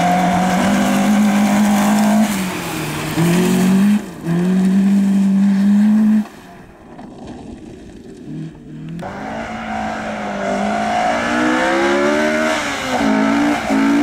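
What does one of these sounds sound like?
A rally car engine revs hard and changes pitch as it races past.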